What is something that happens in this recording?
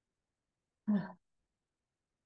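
A woman says a brief word calmly and close by.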